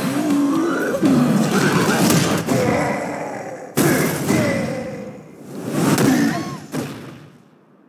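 Loud impacts crash and boom.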